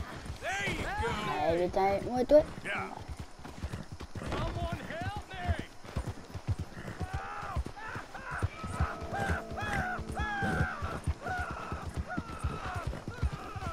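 A horse gallops along a dirt track, its hooves thudding quickly.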